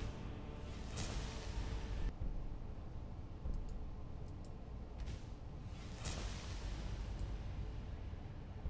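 A shimmering magical whoosh swells and fades.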